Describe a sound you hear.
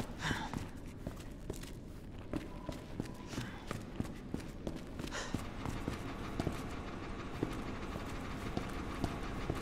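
Footsteps tread steadily on a hard floor in an echoing space.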